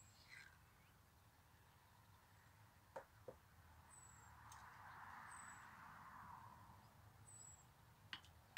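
A metal trailer jack clicks and clanks.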